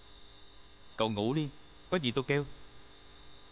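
A man speaks loudly and sharply, close by.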